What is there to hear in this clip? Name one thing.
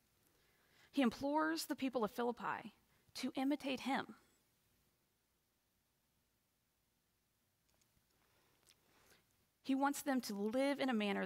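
A young woman speaks calmly over an online call, with pauses.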